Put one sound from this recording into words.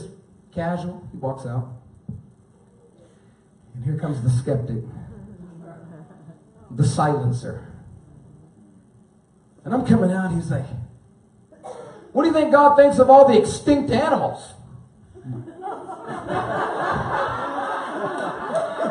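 A man preaches with animation through a microphone, with pauses between phrases.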